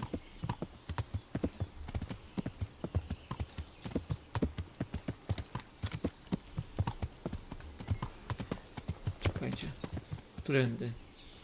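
A horse's hooves clop steadily at a trot on a dirt track.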